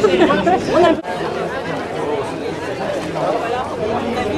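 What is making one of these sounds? A crowd of people murmurs in the open air.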